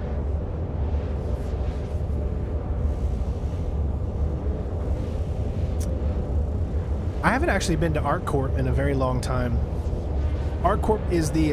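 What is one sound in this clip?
A spacecraft engine hums with a steady low rumble.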